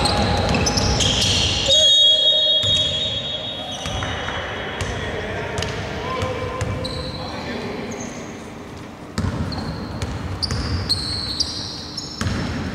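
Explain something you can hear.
Men call out to each other across the court.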